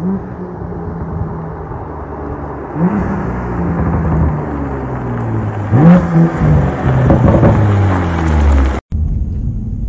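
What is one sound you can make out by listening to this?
A car engine roars closer and passes by outdoors.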